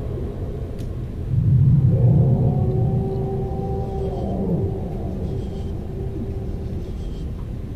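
Lava rumbles deeply nearby.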